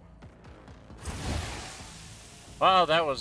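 A magical whoosh swells and fades.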